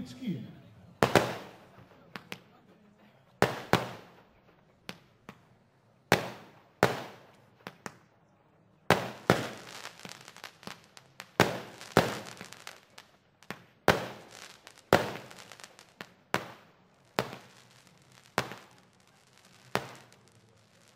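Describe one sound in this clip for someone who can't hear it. Fireworks burst with sharp bangs that echo away.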